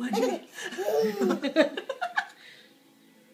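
A baby giggles and squeals happily close by.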